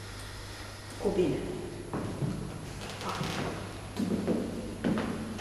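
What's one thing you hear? A woman recites aloud in an echoing hall.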